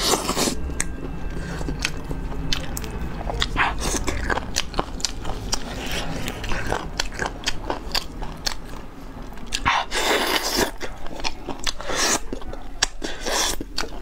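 Lettuce leaves crinkle and crunch close to a microphone.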